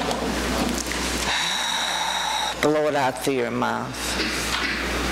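A middle-aged woman speaks with animation into a microphone, heard through a loudspeaker in an echoing hall.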